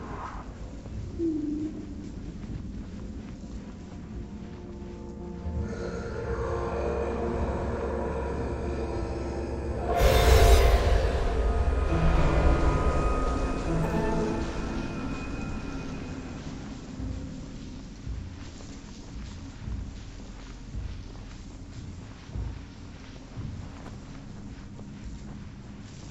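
Sand hisses softly as robed figures slide across it.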